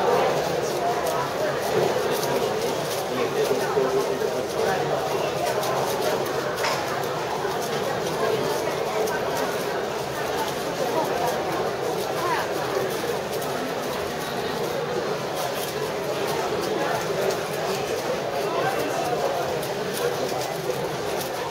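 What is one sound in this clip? A puzzle cube clicks rapidly as it is turned.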